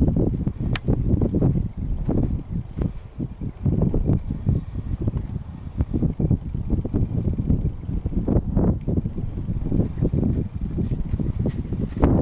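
Wind rumbles heavily across the microphone outdoors.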